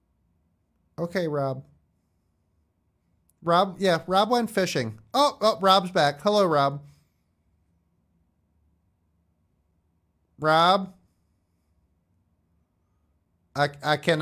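A man speaks into a close microphone in short, calm bursts.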